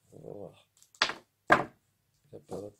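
Small metal parts click in a man's hands.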